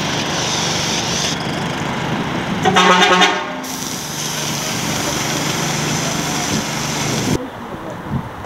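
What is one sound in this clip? A spray can hisses steadily.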